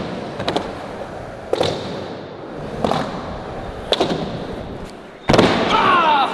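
Skateboard wheels roll and rumble on a concrete floor.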